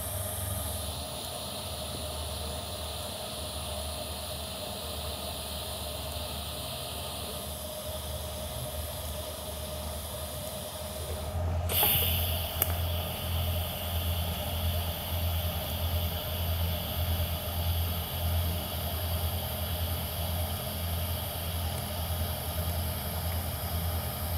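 A welding arc buzzes and crackles steadily.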